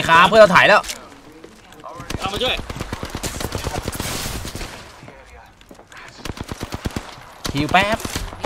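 Rapid gunshots ring out from a video game.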